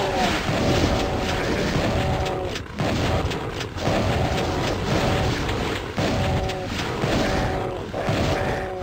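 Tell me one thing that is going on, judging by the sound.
A shotgun fires repeatedly with loud, booming blasts.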